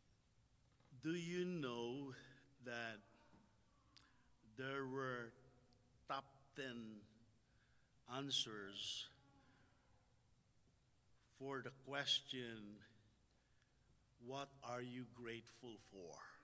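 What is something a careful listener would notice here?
A man speaks calmly through a microphone, with pauses between phrases, in a large room with some echo.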